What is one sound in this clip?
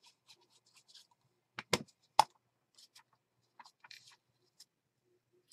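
Paper rustles and crinkles under hands.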